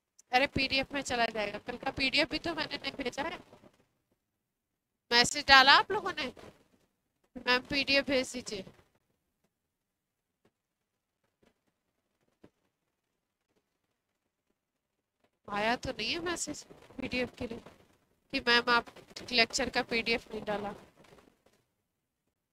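A woman speaks clearly into a close microphone, explaining in bursts with pauses.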